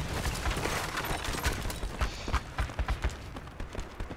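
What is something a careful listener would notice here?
An explosion rumbles and echoes loudly in a large hall, then fades.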